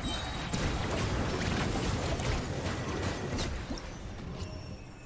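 Loud magical blasts and whooshes from a video game battle crash and roar.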